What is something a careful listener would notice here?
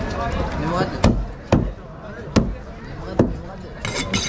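A knife chops through fish onto a wooden board with sharp thuds.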